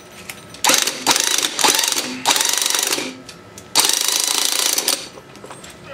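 A power screwdriver whirs in loud short bursts.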